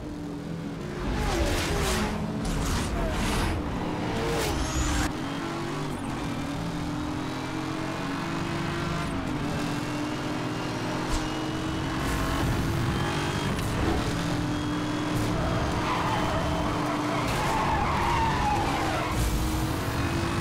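A powerful car engine roars at high speed, its pitch rising as it accelerates.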